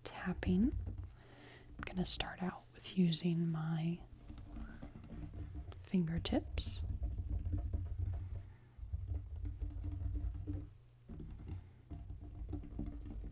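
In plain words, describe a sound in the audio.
Gloved fingers rub and trace across a tabletop.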